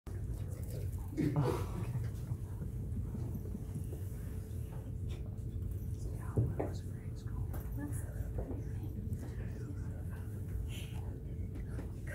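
A young man speaks in a large room.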